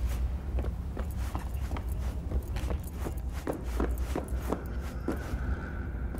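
Footsteps walk quickly over a hard floor.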